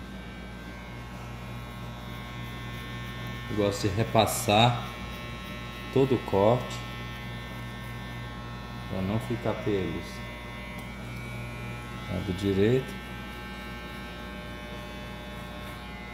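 Electric hair clippers buzz steadily close by.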